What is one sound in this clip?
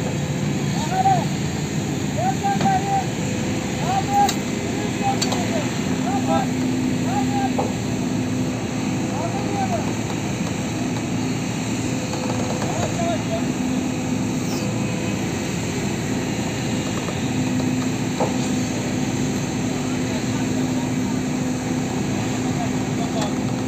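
A steel excavator bucket scrapes and grinds against a truck's metal cab.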